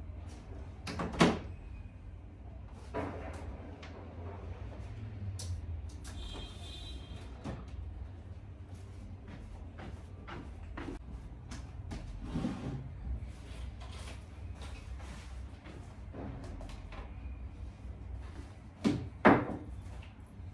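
Objects are knocked and set down with sharp thumps.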